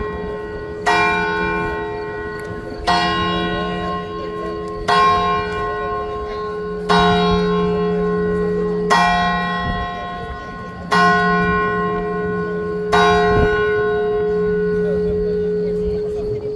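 A church bell tolls slowly and rings on between strokes.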